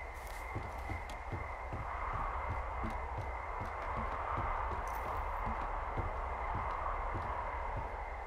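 Footsteps climb wooden stairs.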